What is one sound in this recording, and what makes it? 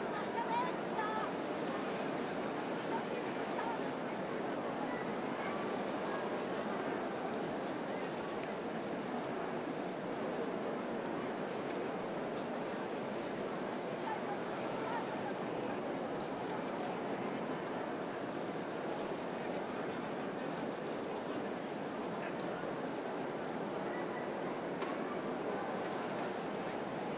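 A large crowd chatters steadily outdoors.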